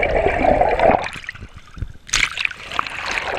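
Water splashes loudly close by.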